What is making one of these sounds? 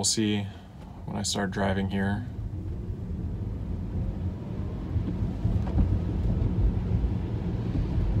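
A car's tyres hiss on a wet road as it speeds up.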